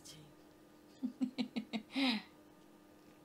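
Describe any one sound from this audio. A young woman laughs in short bursts.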